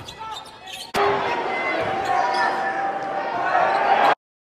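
A crowd cheers and roars in an echoing gym.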